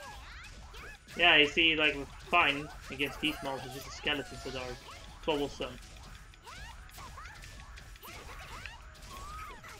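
Blades slash and strike in a fast fight.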